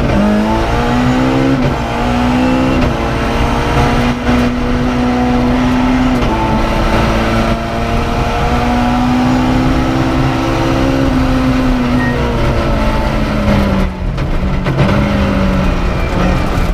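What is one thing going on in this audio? A man reads out pace notes through an intercom.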